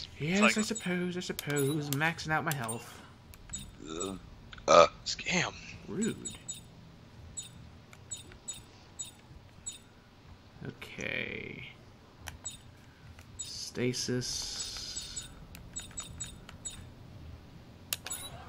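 Short electronic menu clicks tick as selections change.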